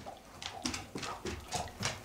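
A dog howls nearby.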